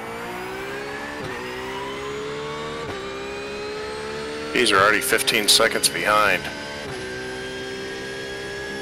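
A racing car engine revs steadily higher, dropping briefly with each gear change.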